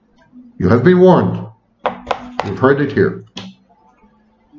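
A middle-aged man speaks calmly, close to a computer microphone.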